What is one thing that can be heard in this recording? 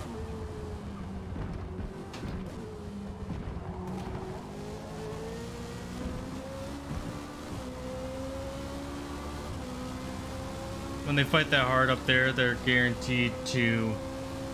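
A racing car engine roars steadily, its pitch climbing as the car speeds up.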